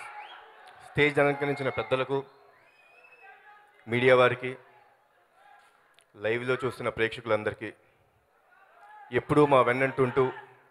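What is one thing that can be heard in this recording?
A young man speaks loudly through a microphone over loudspeakers, in short bursts.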